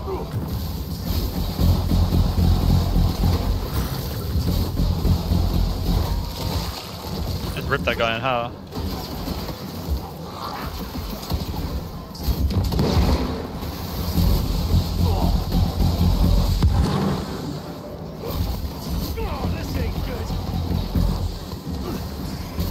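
Gunshots and explosions boom and crackle loudly throughout.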